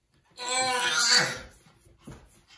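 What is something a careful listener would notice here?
A baby squeals loudly close by.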